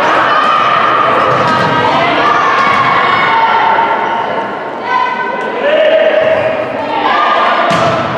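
Young women cheer and chant loudly in an echoing gym.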